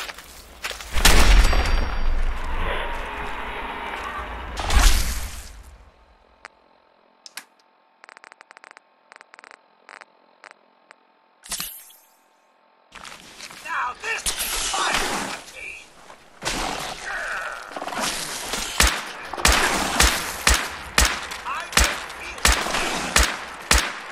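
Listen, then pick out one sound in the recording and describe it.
A rifle fires sharp shots in quick succession.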